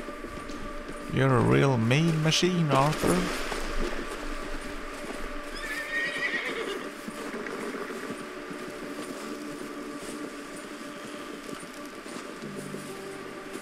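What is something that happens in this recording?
A horse's hooves crunch steadily through snow.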